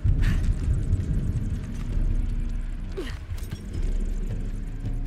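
Wind rumbles low and steady.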